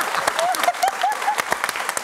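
A young woman laughs loudly.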